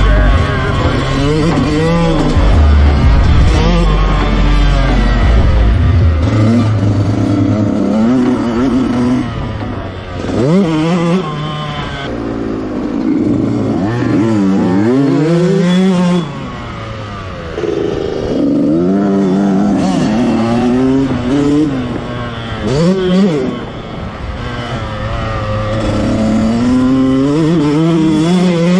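A dirt bike engine revs loudly, rising and falling in pitch.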